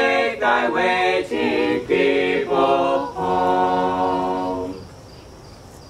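An electric keyboard plays along with the singers.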